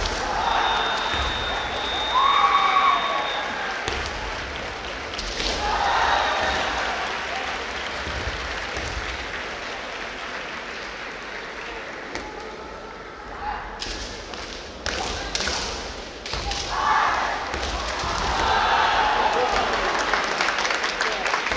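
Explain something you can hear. Fighters shout sharp, loud cries that echo in a large hall.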